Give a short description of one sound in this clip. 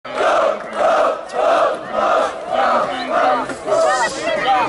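A large outdoor crowd chants together in a steady rhythm.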